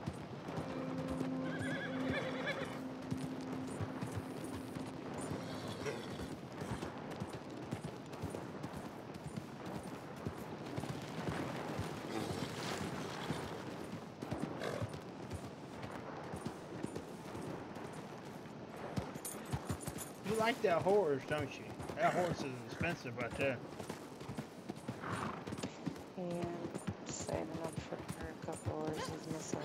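A horse's hooves thud steadily on grass and dirt.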